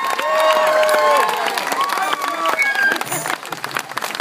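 A crowd cheers and whistles outdoors.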